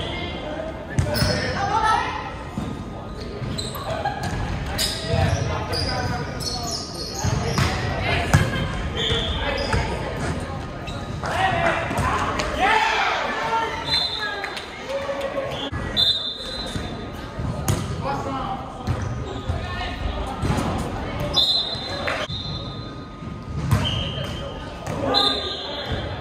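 A volleyball is struck with sharp thumps in a large echoing gym.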